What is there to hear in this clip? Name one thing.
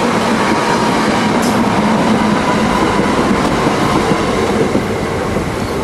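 Wheels clatter over rail joints.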